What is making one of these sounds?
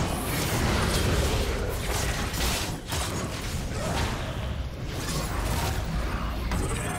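Magic blasts and clashing combat effects crackle and boom.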